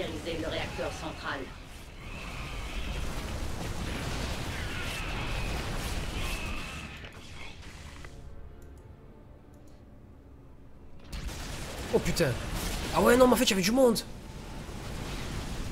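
Gunfire and explosions crackle from a battle in a game.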